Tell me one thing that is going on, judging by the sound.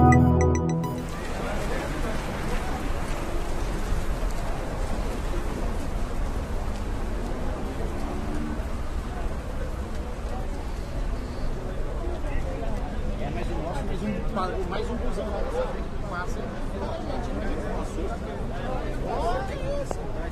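A crowd of men and women talk excitedly nearby, outdoors.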